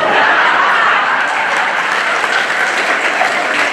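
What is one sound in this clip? An elderly man claps his hands.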